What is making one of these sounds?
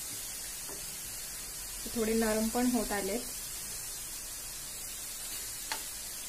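A metal spoon scrapes and taps against a frying pan.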